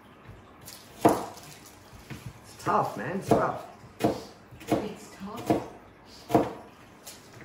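A knife chops onions on a cutting board with sharp, spaced knocks.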